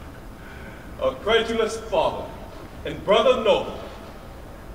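A man speaks loudly through a microphone in an echoing hall.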